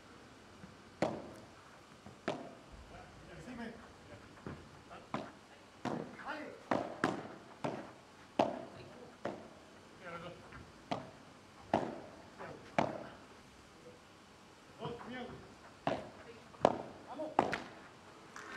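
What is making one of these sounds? A padel ball is struck back and forth with sharp pops.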